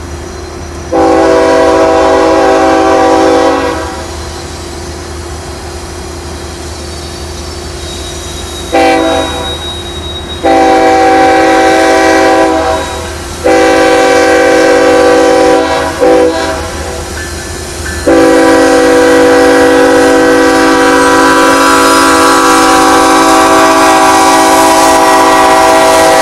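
A train horn blows loudly in long blasts, drawing nearer.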